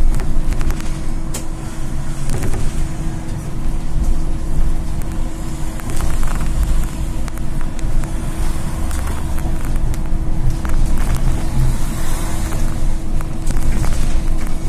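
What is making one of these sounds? The bus body rattles and clatters as it drives.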